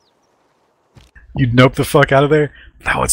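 A man talks into a microphone, close up.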